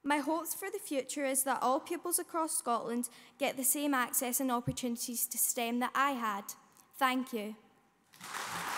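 A young woman speaks steadily through a microphone.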